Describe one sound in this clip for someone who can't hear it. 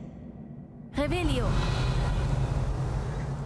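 A magic spell whooshes with a bright, wavering chime.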